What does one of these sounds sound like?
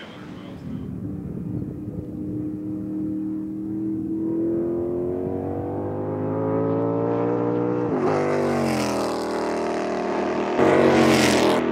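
A race car engine roars and rises in pitch as the car speeds past.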